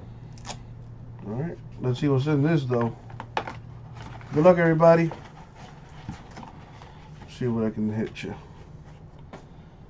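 A cardboard box scrapes and taps as hands handle it.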